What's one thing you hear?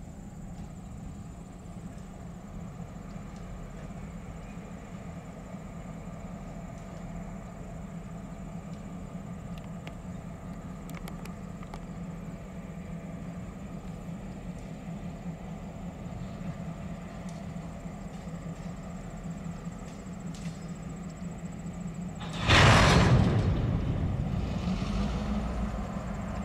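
Diesel locomotives rumble at low speed.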